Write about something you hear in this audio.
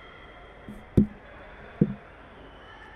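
A ball is kicked hard on an echoing indoor court.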